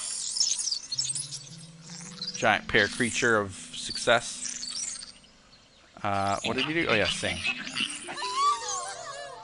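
A small creature sings a short, chirping tune.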